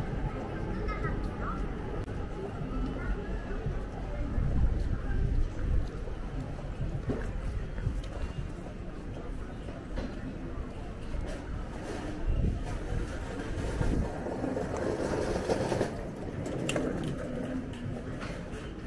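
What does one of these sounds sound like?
Footsteps of passers-by patter on a paved street.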